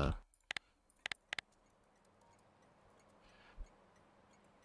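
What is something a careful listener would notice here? Soft game interface clicks sound as buttons are pressed.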